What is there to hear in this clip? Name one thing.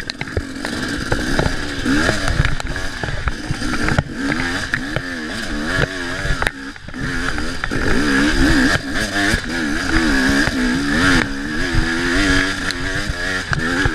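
A motorbike knocks and thumps over rough ground.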